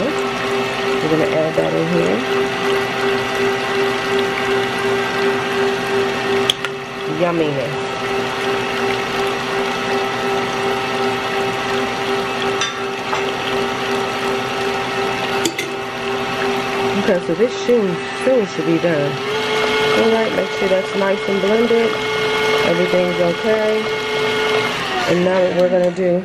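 An electric stand mixer whirs steadily, then speeds up with a higher hum before stopping.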